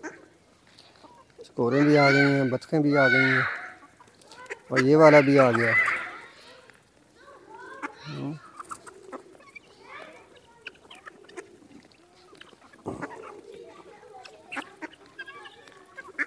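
Hens cluck and chatter softly while pecking.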